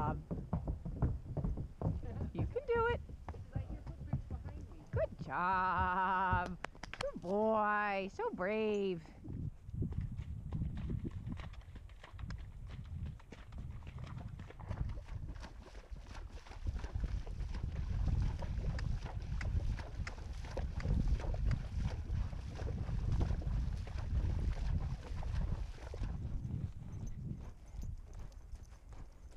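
A horse's hooves thud steadily on a dirt trail.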